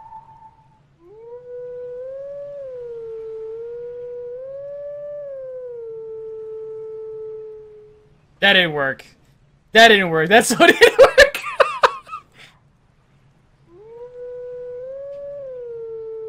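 A wolf howls a slow, wavering melody.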